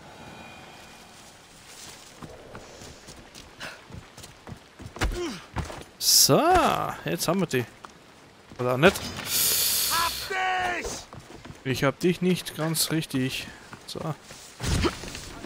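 Footsteps run over dirt and wooden steps.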